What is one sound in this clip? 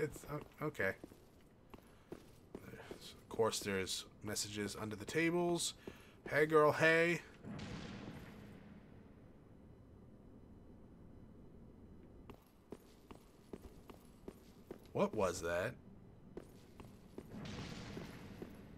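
Armoured footsteps clatter on a stone floor.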